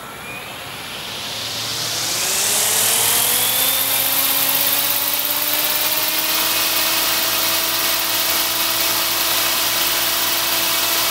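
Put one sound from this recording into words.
Rotor blades whoosh steadily.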